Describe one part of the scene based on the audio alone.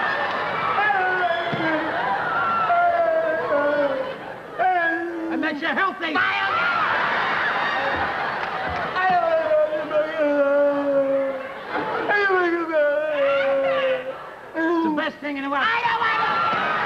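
A young man wails and sobs loudly in an exaggerated voice.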